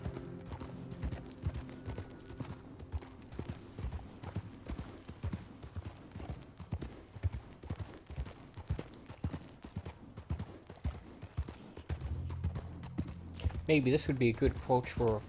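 Horse hooves clop steadily on a dirt trail.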